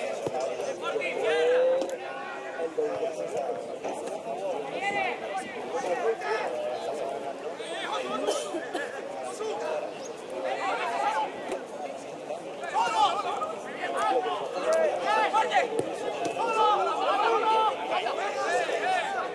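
Players shout to each other across a sports field in the distance.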